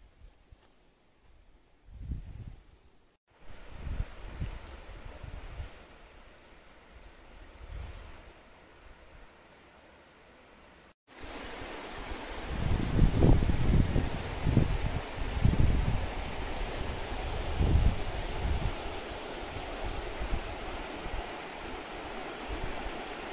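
Wind blows in gusts outdoors, rumbling against the microphone.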